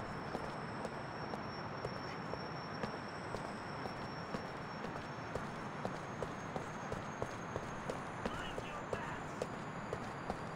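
Footsteps tap quickly and steadily on pavement.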